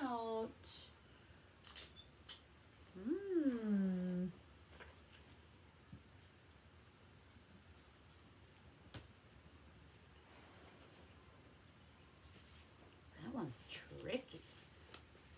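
A young woman speaks calmly, close by, in short phrases.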